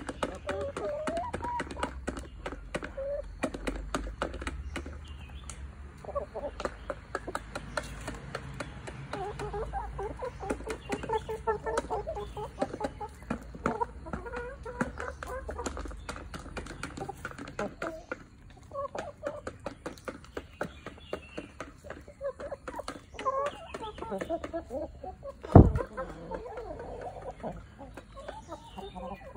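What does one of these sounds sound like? Chickens cluck softly and steadily close by.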